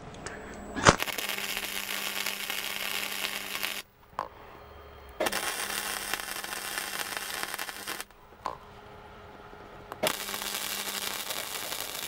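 An arc welder crackles and hisses in steady bursts.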